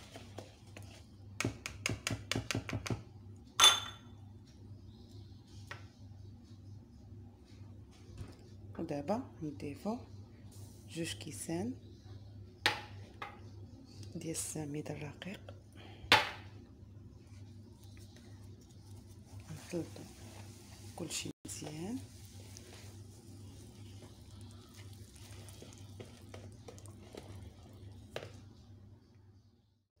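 A wire whisk clinks and scrapes against a bowl while beating batter.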